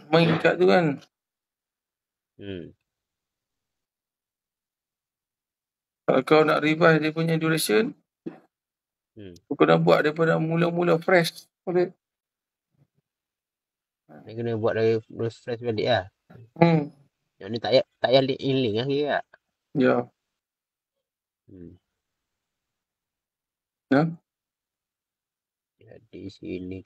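A man talks calmly over an online call, in bursts with pauses.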